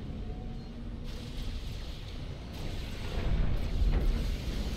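Laser weapons fire with sharp electronic zaps.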